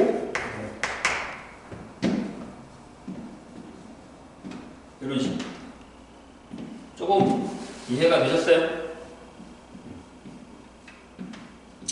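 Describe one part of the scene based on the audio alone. A man speaks calmly, close by, with pauses between phrases.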